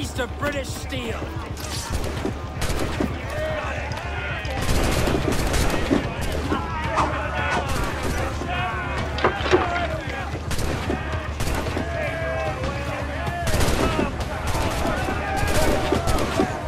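Cannons fire in loud, booming blasts again and again.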